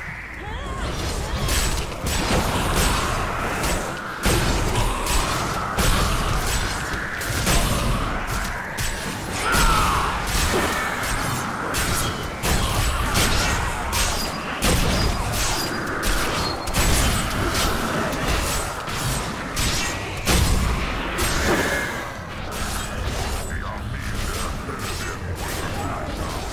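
Game weapons strike enemies with sharp impacts.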